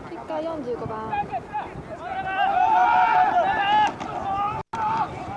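Several young men shout and cheer loudly outdoors.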